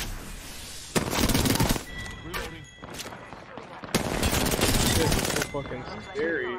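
Rapid gunfire bursts loudly in short volleys.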